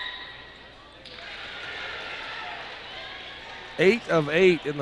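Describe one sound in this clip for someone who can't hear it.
A crowd cheers in a large echoing gym.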